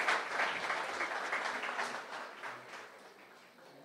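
A small group applauds briefly.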